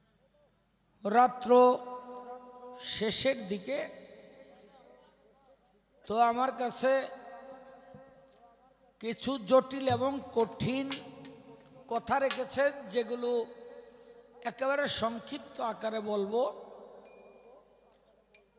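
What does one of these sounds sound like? A middle-aged man sings loudly through a microphone in short phrases with pauses between them.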